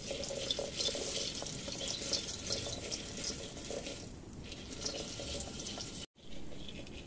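A kettle hisses with steam.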